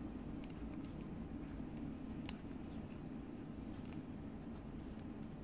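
Yarn rustles as it is pulled through stitches.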